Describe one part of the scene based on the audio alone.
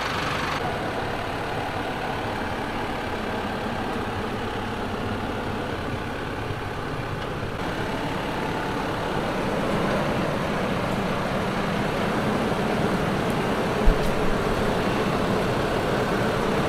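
Large tyres crunch over loose dirt and stones.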